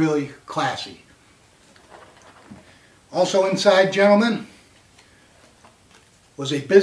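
A middle-aged man talks calmly and close to a microphone.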